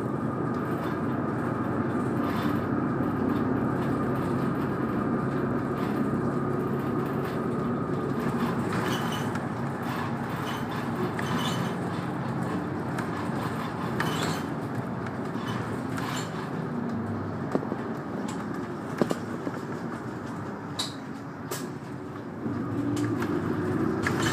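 A vehicle rumbles steadily as it drives along, heard from inside.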